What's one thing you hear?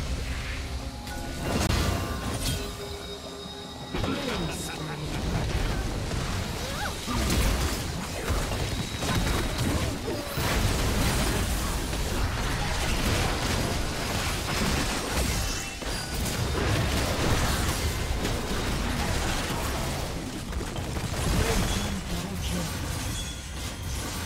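Fast-paced video game battle effects burst, clash and crackle.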